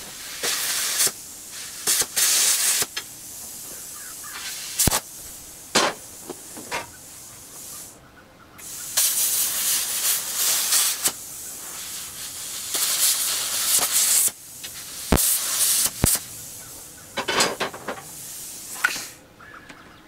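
A power tool cuts through scrap iron in bursts.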